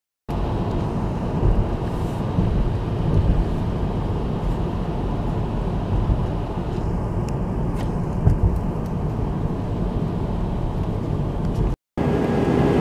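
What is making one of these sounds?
Tyres rumble on a road.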